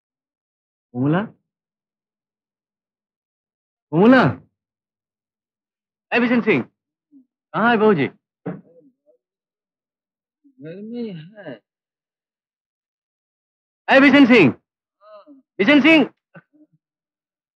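A man calls out in short, anguished bursts, close by.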